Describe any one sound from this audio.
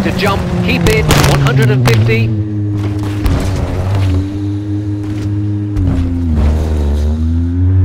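A car body crashes and scrapes as the car rolls over.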